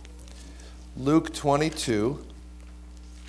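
A man reads aloud from a book, heard through a microphone in a large room.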